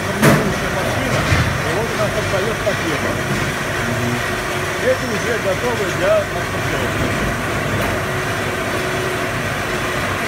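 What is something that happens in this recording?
A forklift drives past in a large echoing hall.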